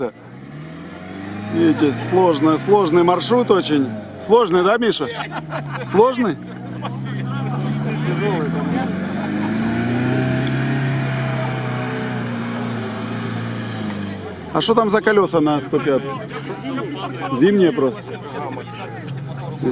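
An off-road car's engine revs as it climbs over sandy bumps.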